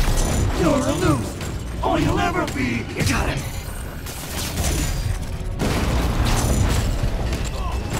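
Heavy blows and thuds land during a fight.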